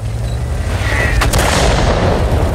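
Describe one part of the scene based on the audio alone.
An explosion roars and crackles.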